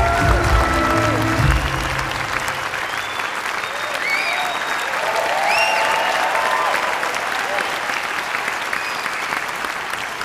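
People in an audience cheer and whoop.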